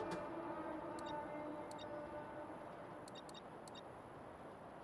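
Soft electronic blips sound as a game menu selection moves.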